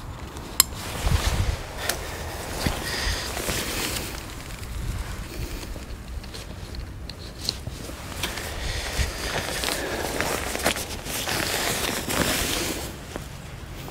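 Tent fabric rustles and flaps as a man handles it.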